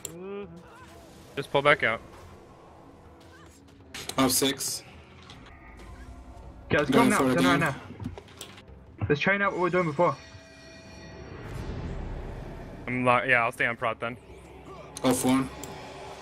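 Magic spells whoosh and chime in a battle.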